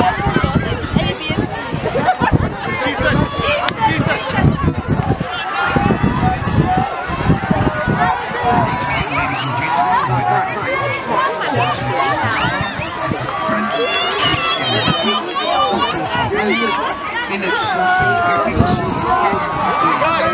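Young children call out to each other while playing.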